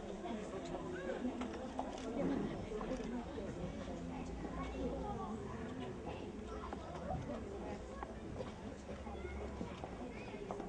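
Young children chatter and call out all around.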